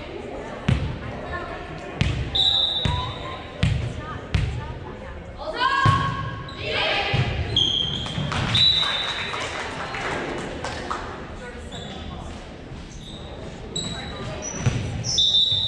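A volleyball is hit with sharp smacks that echo in a large hall.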